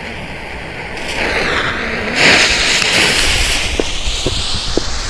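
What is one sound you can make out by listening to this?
A fuse fizzes and sputters.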